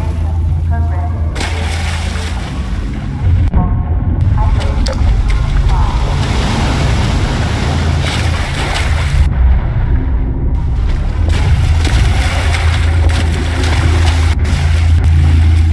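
Water rushes and churns nearby.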